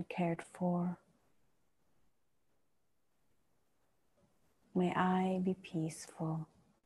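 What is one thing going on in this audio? A woman chants slow, sustained tones close to a microphone.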